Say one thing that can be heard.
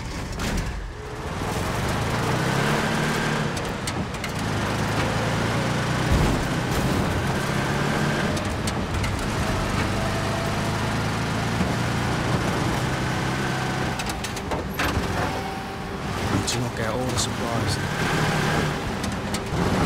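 A vehicle engine rumbles steadily as it drives.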